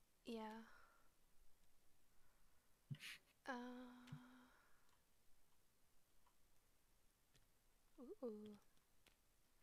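A young woman speaks casually and briefly into a close microphone.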